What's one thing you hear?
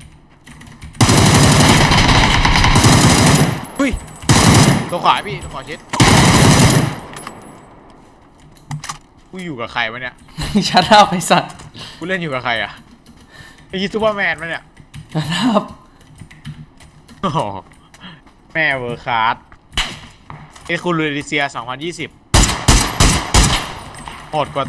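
Rapid gunfire bursts loudly, close by.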